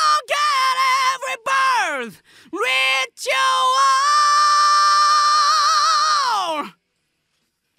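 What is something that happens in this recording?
A young man sings loudly and powerfully into a close microphone, holding long high notes.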